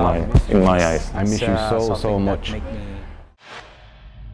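A man speaks with emotion, close to a microphone.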